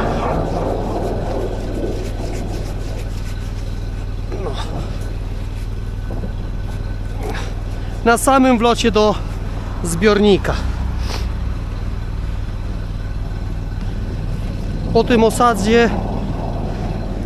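A drain cleaning machine hums steadily.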